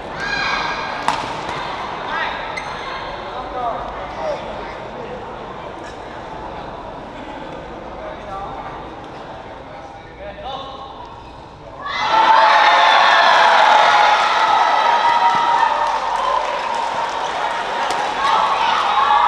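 A shuttlecock is struck sharply with a racket.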